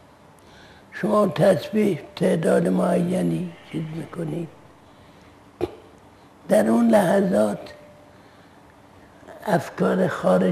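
An elderly man speaks slowly and earnestly into a clip-on microphone, close by.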